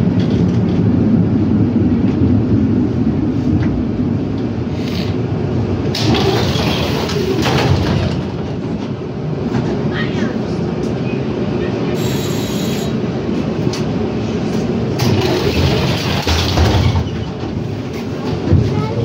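A tram's motor rumbles low and steady.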